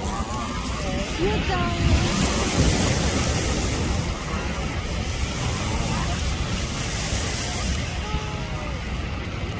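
Children shout and talk in the distance.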